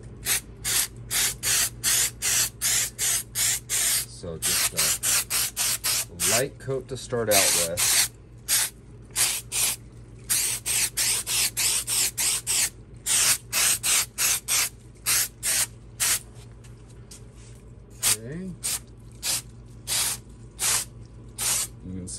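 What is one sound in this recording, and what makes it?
A spray can hisses in short, quick bursts.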